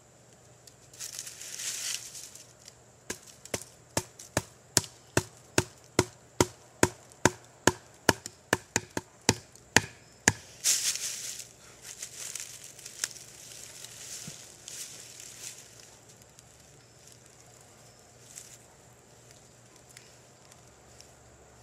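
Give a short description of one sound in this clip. Dry leaves rustle under a man's hands and knees.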